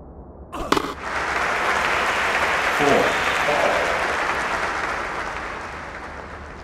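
A crowd cheers and applauds, then slowly fades.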